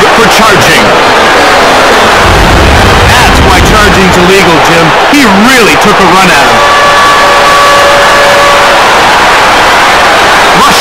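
A large crowd cheers steadily in an echoing arena.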